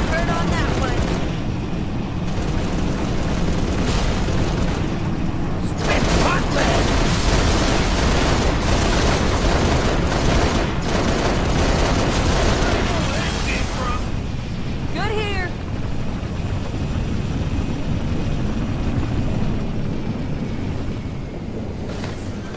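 A tiltrotor aircraft's engines roar steadily as it flies.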